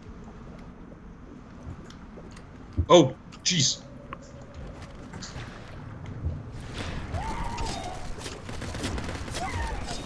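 Water swirls and rumbles low as a shark swims.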